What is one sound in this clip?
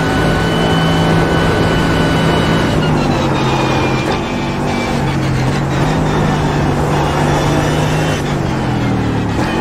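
A racing car engine roars loudly at high speed.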